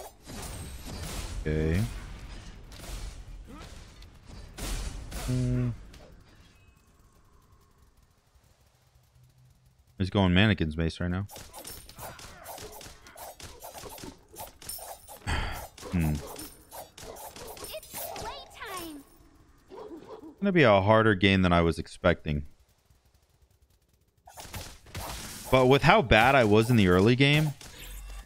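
Magic spells burst and strike with sharp blasts.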